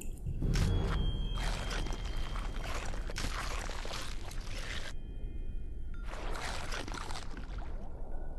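A shark chomps into fish with wet, crunching bites.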